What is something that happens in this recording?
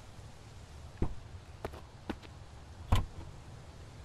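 A car door creaks open.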